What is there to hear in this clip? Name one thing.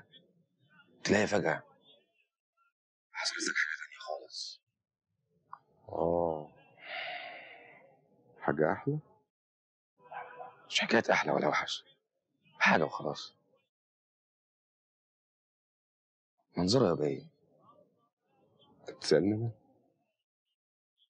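An older man speaks in a low, calm voice.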